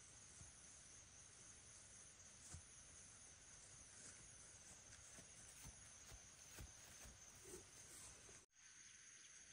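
Footsteps swish through tall dry grass.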